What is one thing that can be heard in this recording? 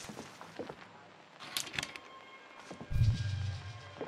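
A door latch slides open with a metallic scrape.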